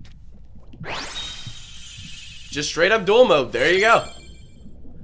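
A bright chime rings out as a card is won in a video game.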